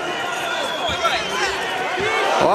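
A punch thuds against a body.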